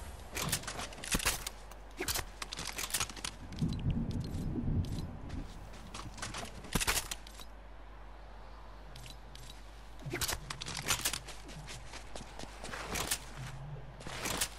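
A video game character's footsteps crunch on snow.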